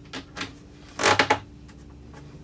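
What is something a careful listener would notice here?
A hand knocks on a metal panel.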